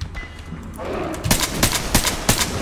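A weapon fires in rapid bursts.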